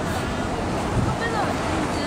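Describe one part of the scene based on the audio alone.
Several people chat softly in the distance outdoors.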